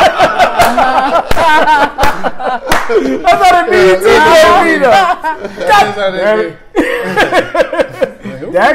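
Several men and a woman talk and laugh animatedly, close by.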